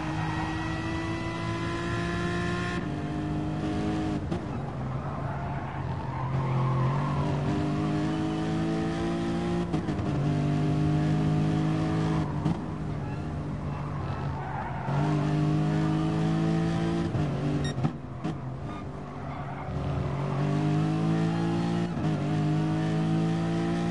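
A racing car engine roars, revving up through the gears and dropping in pitch at each gear change.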